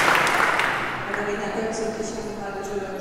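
A mixed choir sings a cappella in a large echoing hall.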